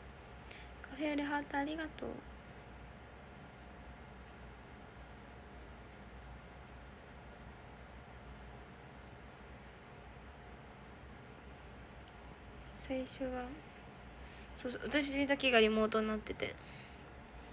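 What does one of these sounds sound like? A young woman speaks softly and briefly, close to a phone microphone.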